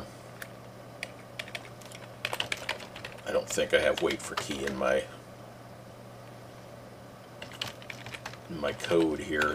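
Computer keys clack in quick bursts.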